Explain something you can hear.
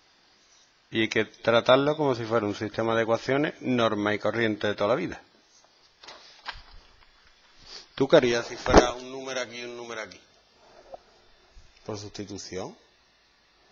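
A man speaks calmly through a headset microphone, explaining.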